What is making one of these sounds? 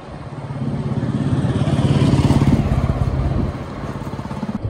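A motorcycle rides close ahead.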